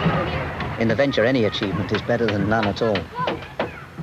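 A hammer knocks on a wooden post.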